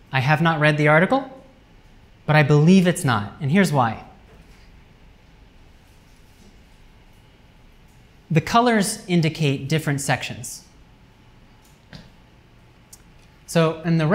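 A man speaks calmly, lecturing through a microphone.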